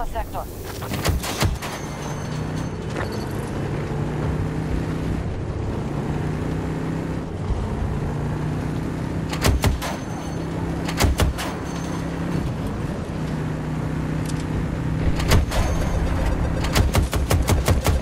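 Heavy gunfire and explosions boom in sharp bursts.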